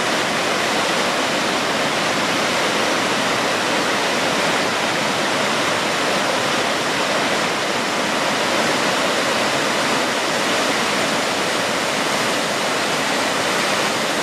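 A waterfall roars, cascading down rocky steps.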